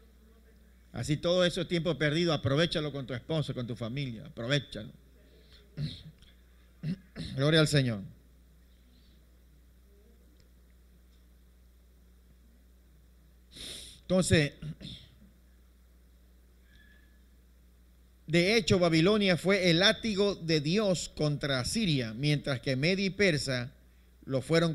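A man speaks through a microphone with pauses, in a room that echoes slightly.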